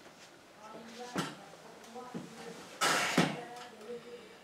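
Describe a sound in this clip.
A chair creaks as an elderly man sits down.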